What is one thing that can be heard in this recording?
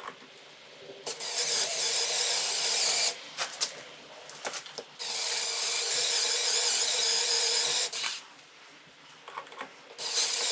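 A power drill whirs loudly in bursts as it bores into metal.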